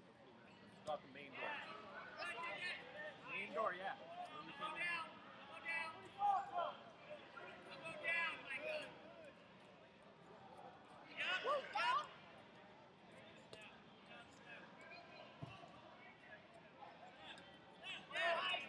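Men shout instructions from close by in a large echoing hall.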